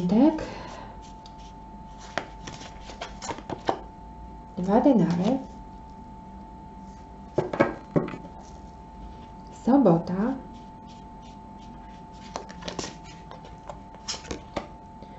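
Playing cards riffle and flick as they are shuffled by hand.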